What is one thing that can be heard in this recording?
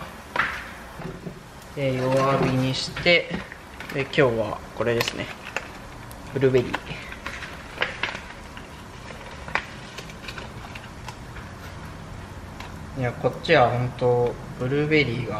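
Batter sizzles softly in a frying pan.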